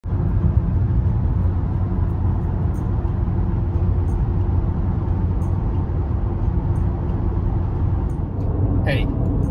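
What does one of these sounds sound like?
A car's engine and tyres rumble steadily on the road.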